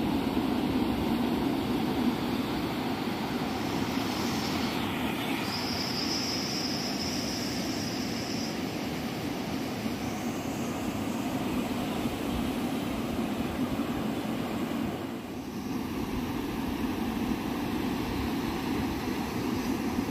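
Ocean waves roll in and wash steadily onto the shore.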